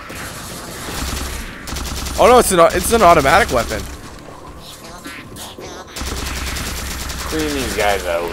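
An energy weapon fires with zapping bursts.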